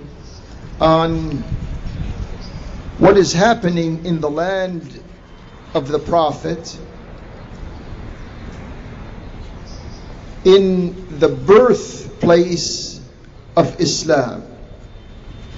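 A man speaks slowly and deliberately into a microphone, heard through loudspeakers.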